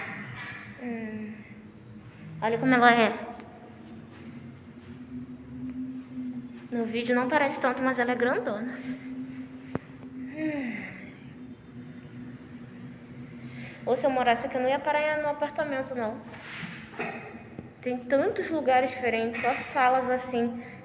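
A young woman talks close by in a lively way, with pauses.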